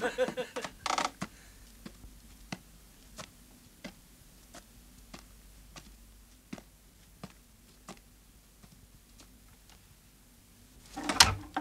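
Footsteps tread slowly on a wooden floor.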